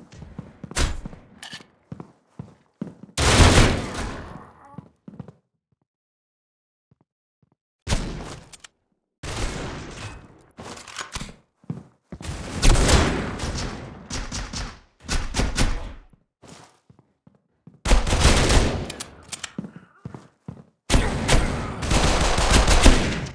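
Automatic gunfire rattles in short, loud bursts.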